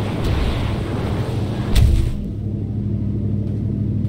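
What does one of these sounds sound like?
A heavy thud sounds as a figure lands on the ground.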